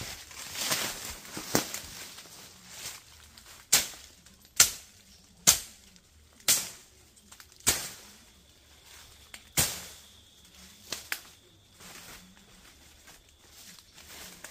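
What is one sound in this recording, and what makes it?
Leaves rustle as a man pushes through undergrowth.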